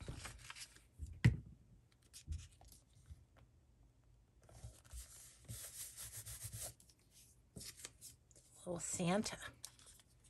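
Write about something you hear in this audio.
Paper rustles and crinkles as it is handled and pressed down.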